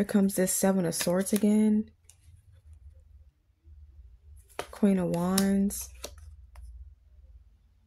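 Playing cards slide softly across a table.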